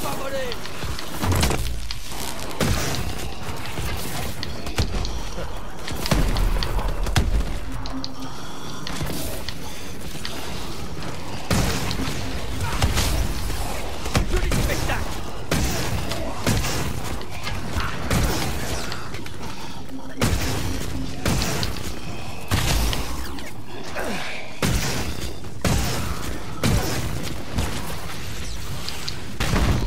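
A heavy energy gun fires in bursts.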